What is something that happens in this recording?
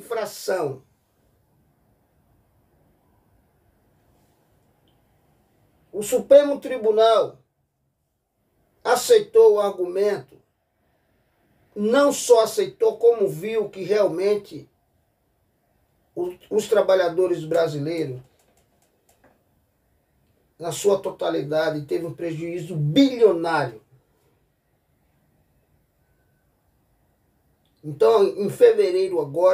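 A middle-aged man speaks calmly and close to a microphone, in short bursts with long pauses.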